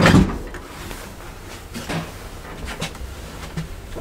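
A heavy lift door thuds closed.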